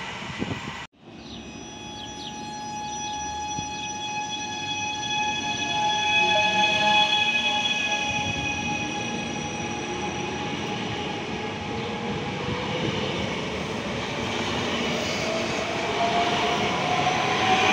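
A train rolls slowly into a station, rumbling on the rails.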